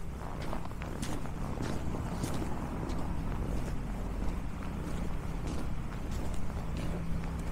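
Footsteps crunch steadily on packed snow.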